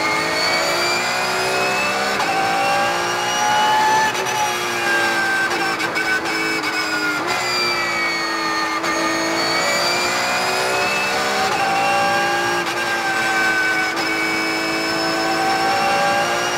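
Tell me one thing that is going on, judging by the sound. A race car engine roars loudly, rising and falling in pitch as it revs up and shifts gears.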